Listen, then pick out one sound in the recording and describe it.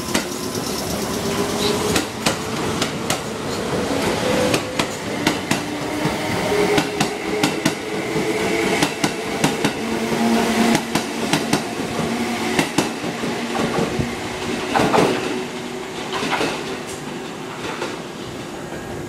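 A train's brakes squeal as it passes.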